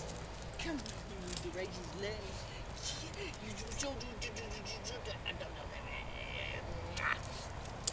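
A small dog whines excitedly.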